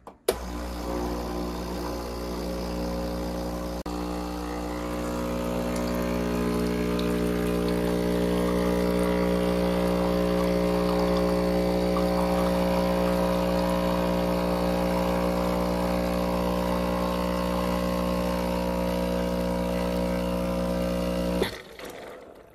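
An espresso machine pump hums steadily and loudly, then stops.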